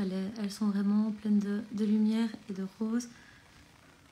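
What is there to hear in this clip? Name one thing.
A young woman speaks close to the microphone.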